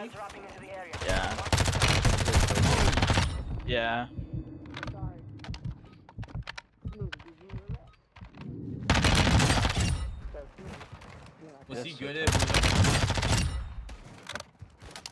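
Rapid gunfire from a video game rattles in loud bursts.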